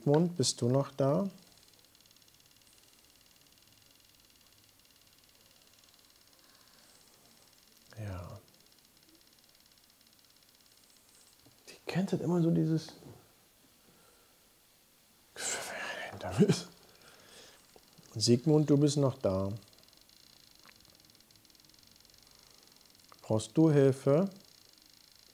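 A man speaks in short bursts, close to a microphone, with quiet pauses between.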